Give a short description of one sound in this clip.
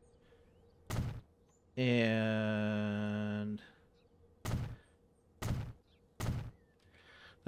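Short thuds sound as buildings are placed.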